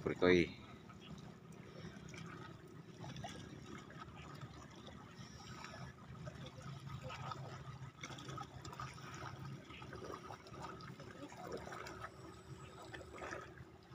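Small waves lap softly against rocks.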